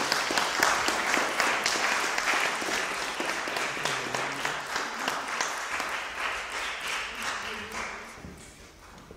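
A plucked zither strums chords.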